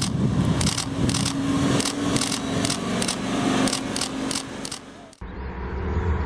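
A sports car engine hums as the car drives past slowly.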